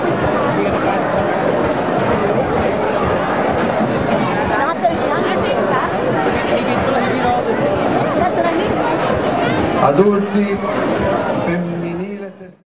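A man announces through a loudspeaker, outdoors.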